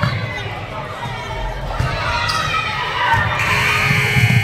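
Sneakers squeak on a wooden floor in a large echoing gym.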